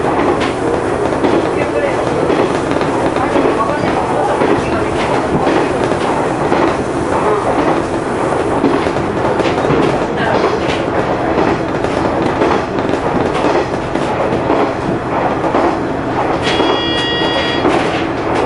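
A train's engine rumbles steadily from inside the cab.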